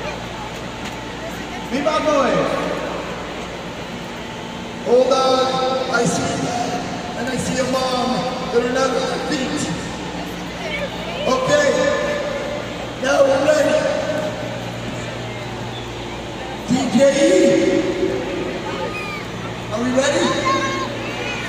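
A large crowd murmurs and chatters in a large echoing arena.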